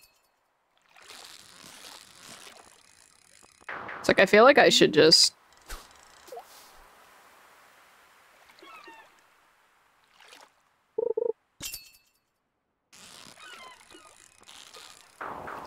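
A fishing line reels in with a whirring sound in a game.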